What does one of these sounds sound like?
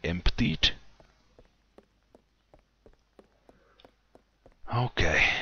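Footsteps tap on a stone floor, echoing in a vaulted room.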